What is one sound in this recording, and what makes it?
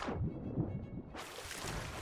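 Water splashes around a swimmer.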